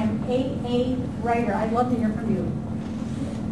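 An elderly woman speaks nearby.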